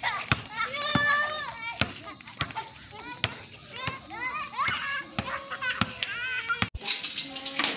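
Young children shout and squeal happily outdoors.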